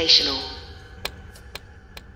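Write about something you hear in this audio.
A chess clock button clicks sharply.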